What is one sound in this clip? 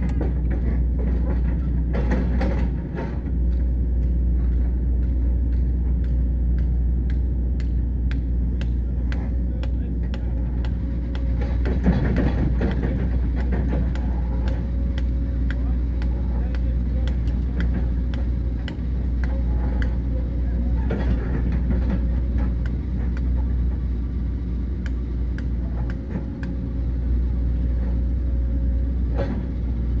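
A digger bucket scrapes and clanks in soil and stones.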